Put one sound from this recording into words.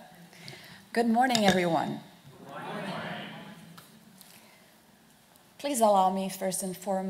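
A woman speaks into a microphone over loudspeakers in a large room.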